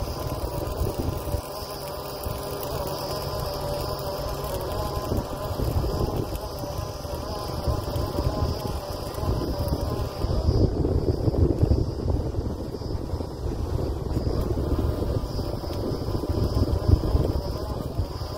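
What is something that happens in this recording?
A drilling rig's diesel engine rumbles and drones steadily.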